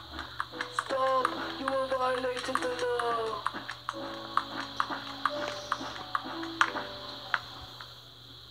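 Tinny game music plays from a television speaker.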